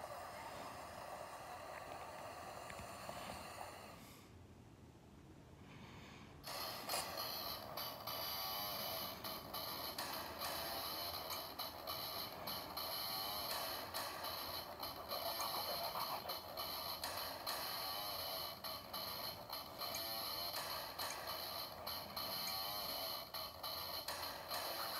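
Music plays through a small, tinny speaker.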